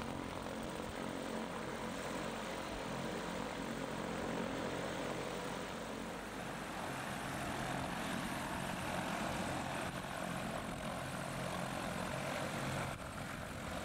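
A light single-engine propeller plane's piston engine drones as the plane taxis.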